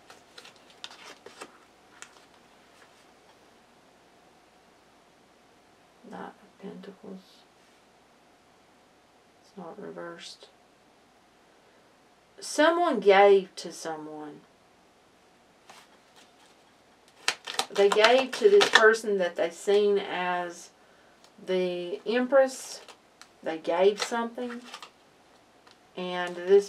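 Playing cards rustle and slide softly as a hand handles them.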